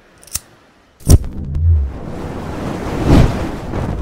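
Flames whoosh up and roar.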